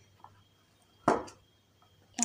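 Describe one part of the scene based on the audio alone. A cardboard box lid snaps shut.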